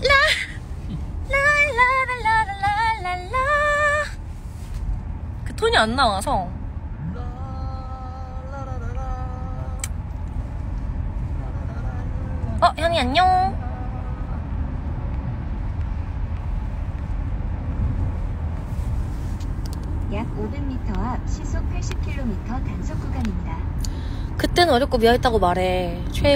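A young woman talks and laughs close by, excitedly.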